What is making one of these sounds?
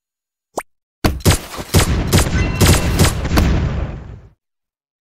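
Gunfire and explosions from a game crackle and boom in quick bursts.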